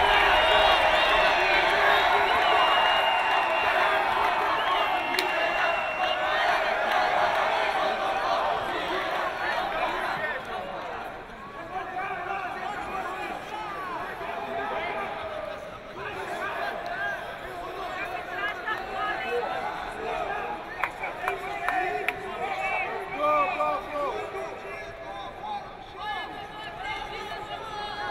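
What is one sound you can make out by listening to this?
Voices chatter and call out from the crowd.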